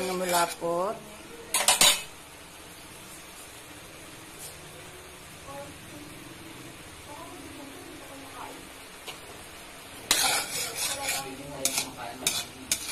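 A metal spoon scrapes and stirs against a pan.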